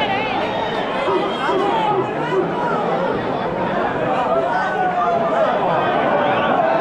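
A large outdoor crowd of men and women chatters and shouts all at once.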